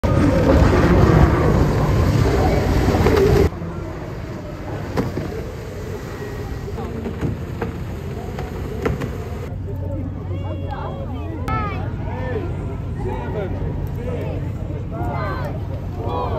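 A racing boat skims fast across the water with a rushing hiss of spray.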